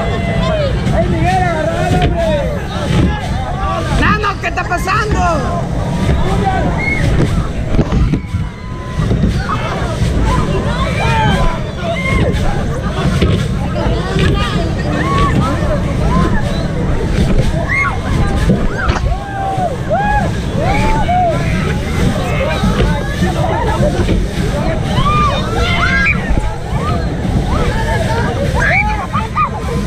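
Wind rushes loudly past the microphone outdoors.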